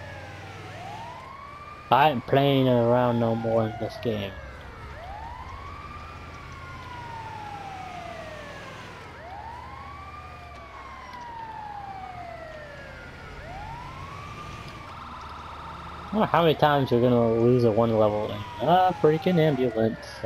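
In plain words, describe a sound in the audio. A siren wails over and over.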